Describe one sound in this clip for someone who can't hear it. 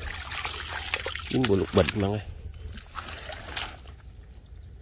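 Leafy plants rustle and snap as they are pulled from wet mud.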